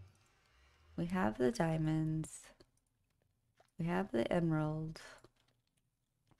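A young woman speaks close to a microphone, drawing out her words playfully.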